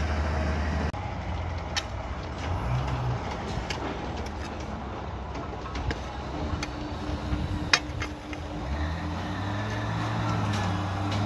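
A shovel digs and chops into hard soil.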